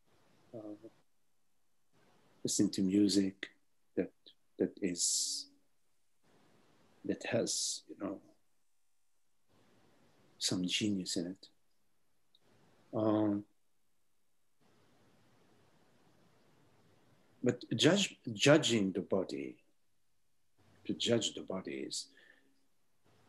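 An elderly man speaks calmly, with pauses, over an online call.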